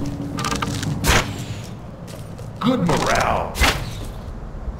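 An arrow is loosed from a bow with a sharp twang and whoosh.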